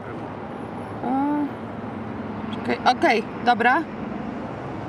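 A young woman speaks briefly outdoors.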